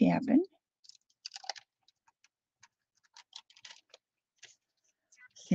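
Thin paper crinkles and rustles as it is peeled away by hand.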